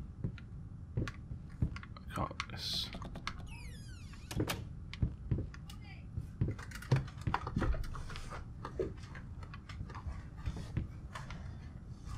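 Footsteps thud slowly on creaking wooden floorboards.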